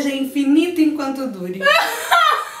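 A woman speaks cheerfully, close by.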